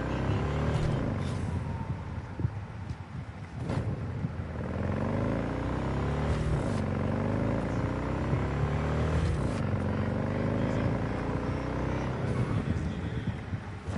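A motorcycle engine revs up and down as it speeds along.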